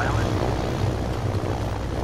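A helicopter's rotor thumps nearby.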